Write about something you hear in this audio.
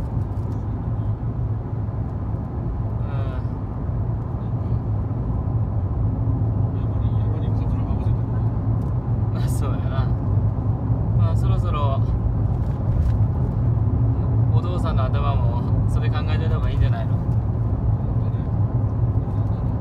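A vehicle's engine and tyres rumble steadily from inside, heard through a window.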